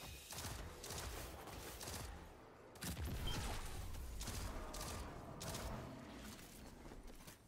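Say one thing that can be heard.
Explosions burst with deep rumbling blasts.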